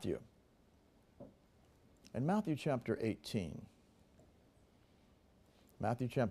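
A middle-aged man speaks calmly into a microphone, reading out with pauses.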